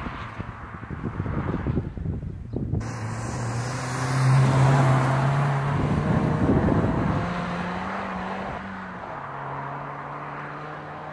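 A car engine hums and roars as the car passes close by, then fades into the distance.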